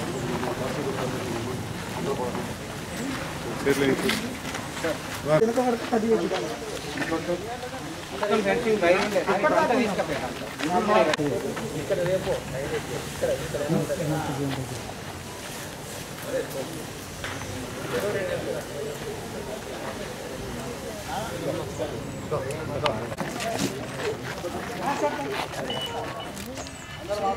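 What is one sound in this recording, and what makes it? Several men talk among themselves in a crowd outdoors.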